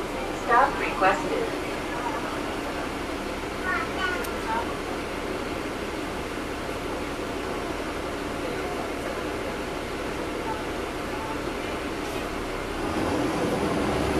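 A bus engine hums and rumbles steadily, growing louder near the end.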